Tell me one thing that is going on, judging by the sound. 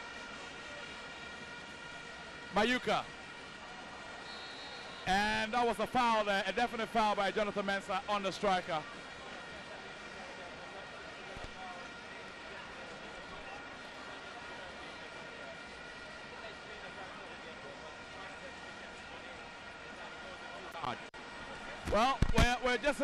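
A large crowd murmurs and roars steadily in an open stadium.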